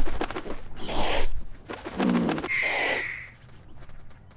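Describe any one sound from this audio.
An eagle screeches loudly.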